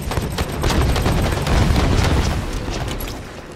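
A blast booms with a deep rumble.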